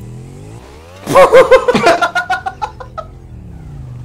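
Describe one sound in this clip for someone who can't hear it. A young man laughs loudly into a close microphone.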